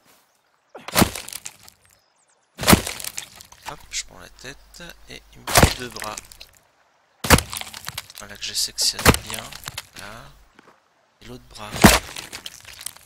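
A blade hacks into flesh with heavy wet chops, again and again.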